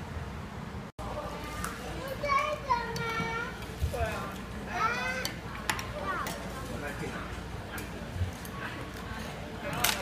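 Chopsticks clink against bowls and plates.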